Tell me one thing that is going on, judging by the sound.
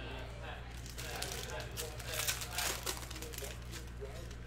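A foil wrapper crinkles as hands tear open a card pack.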